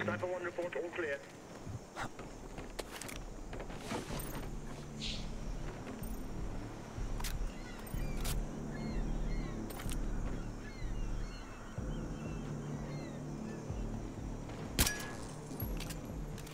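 Soft scuffing and thuds of climbing sound faintly.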